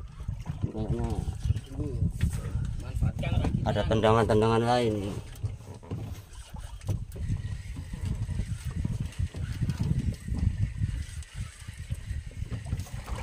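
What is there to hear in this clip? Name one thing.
Wind buffets outdoors over open water.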